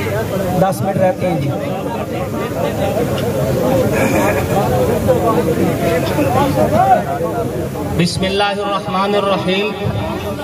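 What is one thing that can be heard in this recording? A crowd of men shouts and cheers.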